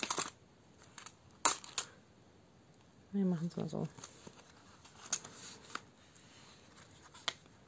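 A plastic pouch crinkles as it is handled.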